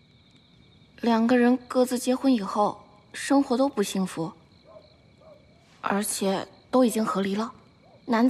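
A young woman speaks calmly nearby.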